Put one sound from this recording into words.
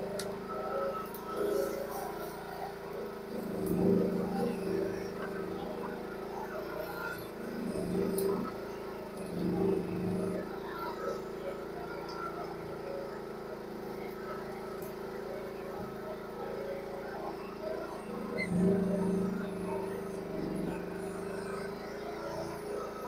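A small excavator's diesel engine runs steadily close by.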